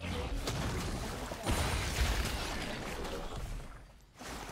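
Magic spell effects whoosh and crackle in a fast fight.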